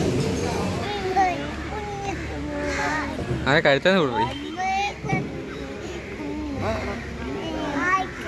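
A young child squeals and babbles close by outdoors.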